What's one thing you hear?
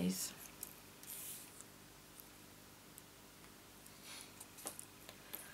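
Paper rustles softly as small pieces are handled.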